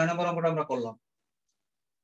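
A man speaks in a lecturing tone.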